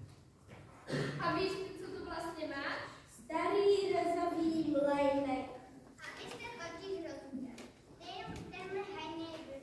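A child speaks loudly and clearly on a stage in a large echoing room.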